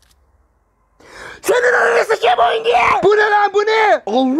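A young man speaks loudly and with animation into a microphone, close up.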